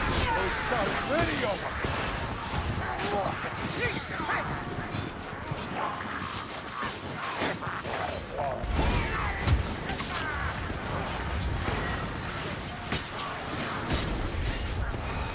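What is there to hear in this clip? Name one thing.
Blades slash and strike flesh again and again.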